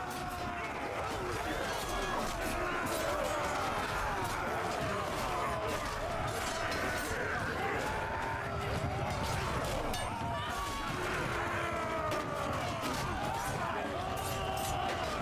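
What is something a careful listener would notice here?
A large crowd of men shouts and yells in battle.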